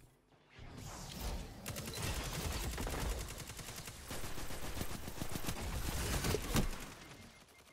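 Gunfire from a video game crackles in rapid bursts.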